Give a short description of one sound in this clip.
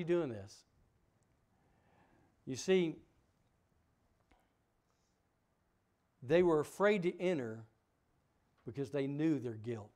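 A middle-aged man speaks with emphasis through a microphone, pausing between phrases.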